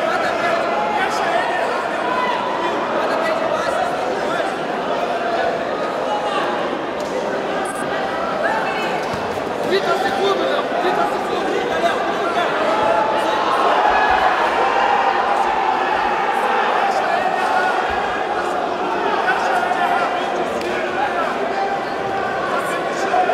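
A large crowd chatters and cheers in an echoing hall.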